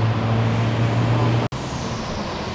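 A tanker truck's engine rumbles.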